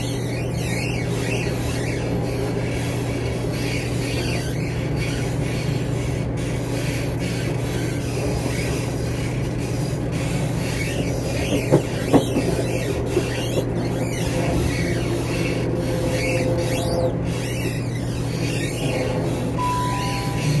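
A train rumbles and hums steadily along the tracks.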